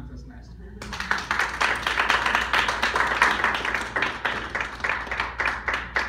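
A small group of people applauds in a room.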